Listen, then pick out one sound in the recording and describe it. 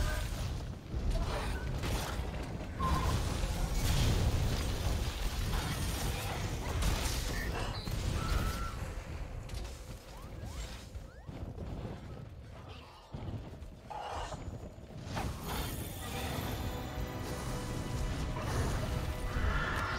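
A huge beast roars and thrashes.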